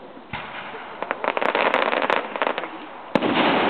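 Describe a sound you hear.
Firework stars crackle and pop after a burst.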